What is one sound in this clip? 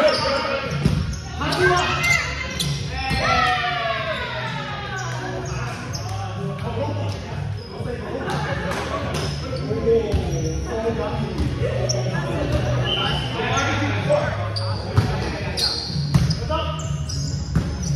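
A volleyball thuds against hands and arms.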